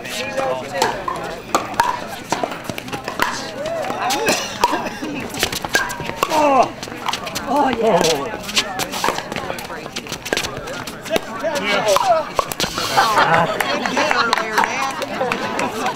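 Paddles sharply pop as they strike a ball back and forth.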